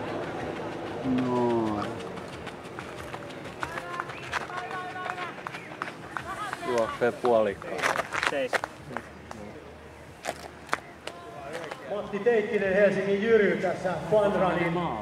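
People call out and cheer outdoors.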